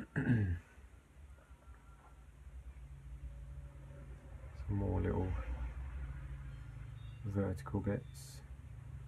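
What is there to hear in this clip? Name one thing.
A paintbrush dabs and strokes softly on paper.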